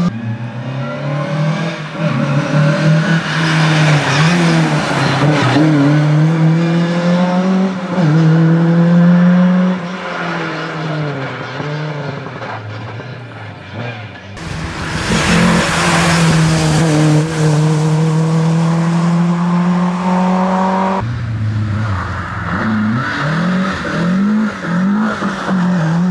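A rally car engine revs hard and changes gear as the car speeds past.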